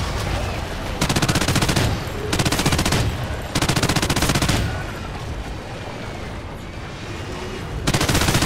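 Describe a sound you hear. A heavy machine gun fires rapid bursts at close range.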